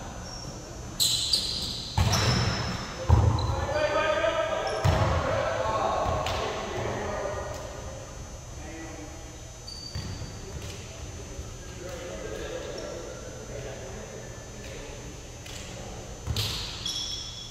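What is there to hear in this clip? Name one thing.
Sneakers squeak on a hard gym floor.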